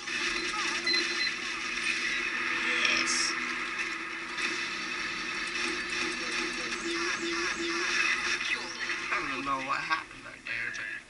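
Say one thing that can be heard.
Rapid gunfire and explosions rattle from a video game over loudspeakers.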